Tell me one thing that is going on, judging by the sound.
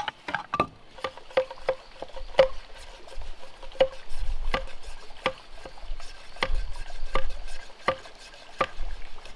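A knife taps lightly and quickly on a piece of bamboo.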